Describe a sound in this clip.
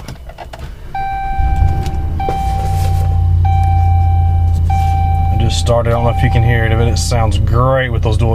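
A warning chime beeps repeatedly from the dashboard.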